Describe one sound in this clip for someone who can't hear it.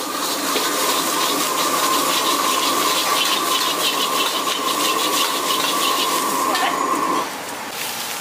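Food sizzles and crackles in a hot wok.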